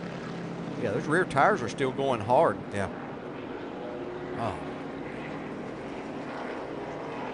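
A race car engine roars at speed.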